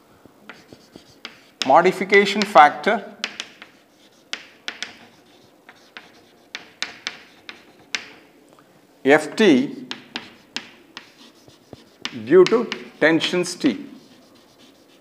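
Chalk taps and scratches on a board.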